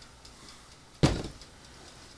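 A bottle knocks on a countertop.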